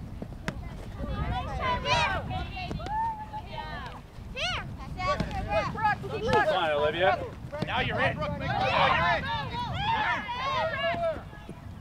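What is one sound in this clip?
Women and girls shout and cheer excitedly outdoors.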